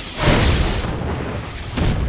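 A missile streaks upward with a roaring whoosh.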